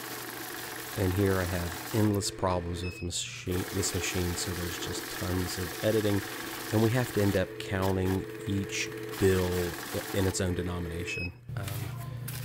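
A banknote counting machine whirs and riffles rapidly through a stack of bills.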